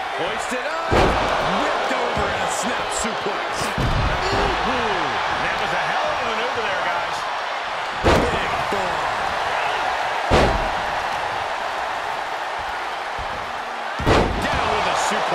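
Heavy bodies slam hard onto a wrestling mat.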